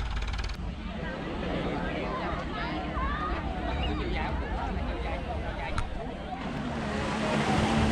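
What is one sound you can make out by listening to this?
A crowd chatters outdoors at a distance.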